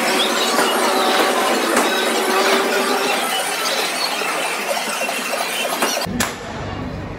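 Arcade game machines play loud electronic music and effects in a busy hall.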